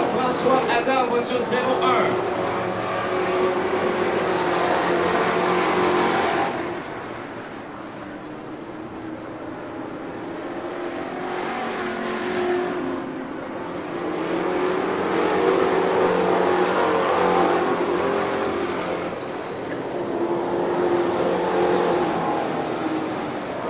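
Race car engines roar loudly around a dirt track, rising and falling as they pass.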